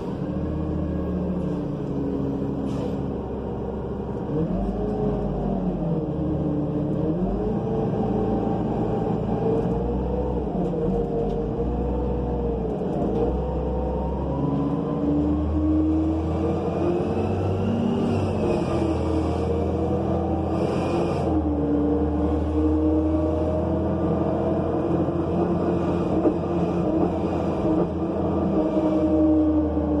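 The bus rattles and creaks over the road.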